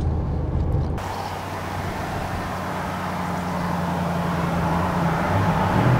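A breeze blows softly outdoors.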